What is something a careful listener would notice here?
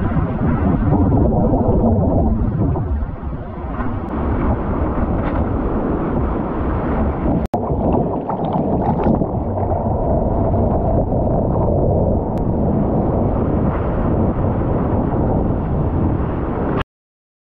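Water rushes and splashes loudly around a surfboard close by.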